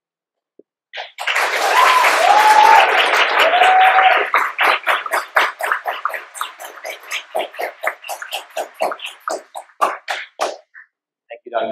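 A large audience applauds in an echoing hall.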